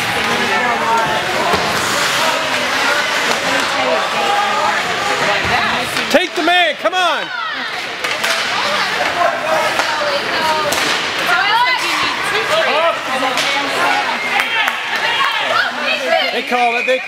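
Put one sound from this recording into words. Hockey skates scrape and carve on ice.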